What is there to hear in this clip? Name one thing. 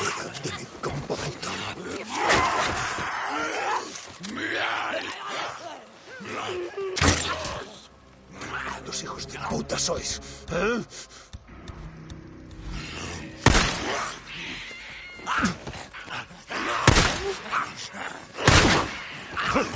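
A creature snarls and shrieks close by.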